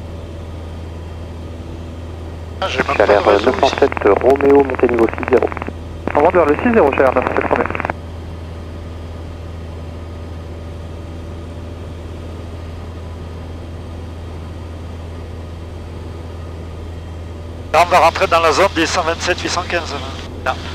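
An aircraft engine drones steadily and low.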